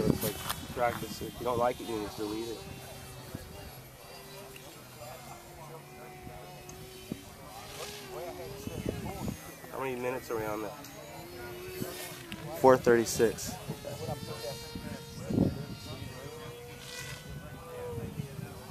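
A jet aircraft whines as it flies overhead, its pitch wavering.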